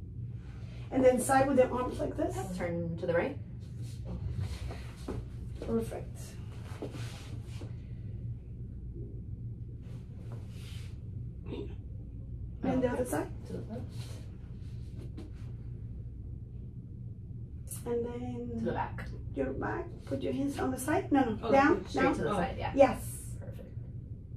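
A woman speaks nearby in short bursts.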